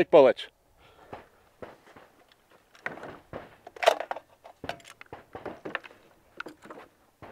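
Metal parts of a rifle click and clack as a man handles it.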